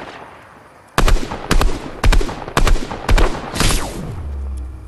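Gunshots crack in a quick series of bursts.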